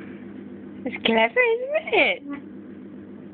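A baby girl babbles and squeals close by.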